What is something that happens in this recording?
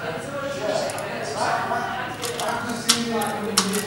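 A wooden hand-cranked gear mechanism clicks and clatters as it turns.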